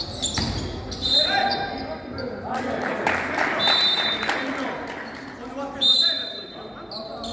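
Basketball shoes squeak sharply on a hall floor.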